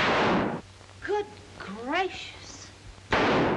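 A woman gasps and cries out in fright.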